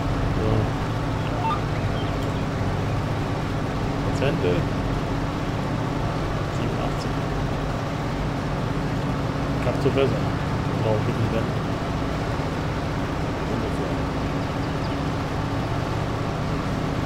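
A harvester engine drones steadily.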